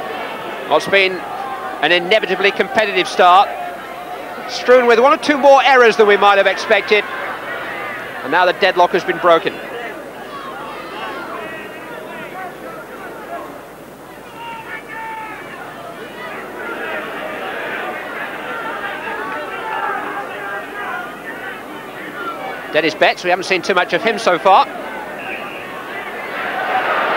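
A large crowd of spectators murmurs and cheers outdoors.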